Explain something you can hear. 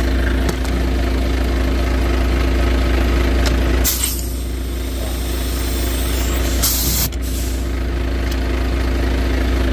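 Fuel rushes from a nozzle into a tank.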